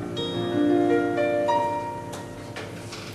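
A woman sings a long held note into a microphone.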